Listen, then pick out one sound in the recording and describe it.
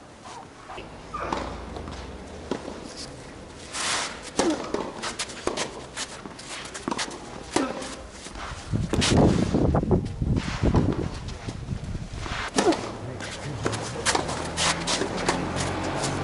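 Tennis shoes scuff and squeak on the court.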